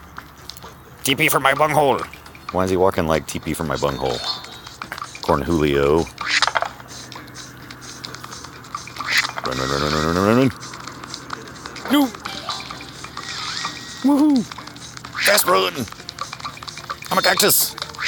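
Cartoonish game sound effects boing and splat with bouncing pitches.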